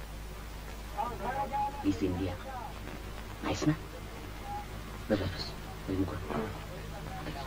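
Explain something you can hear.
A man speaks on an old film soundtrack.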